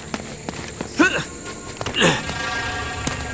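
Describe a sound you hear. A man grunts with effort as he climbs.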